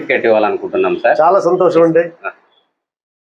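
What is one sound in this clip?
A middle-aged man speaks clearly and with animation close to a microphone.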